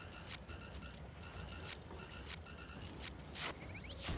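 Electronic beeps repeat at a steady pace.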